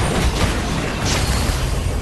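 A fiery explosion roars loudly.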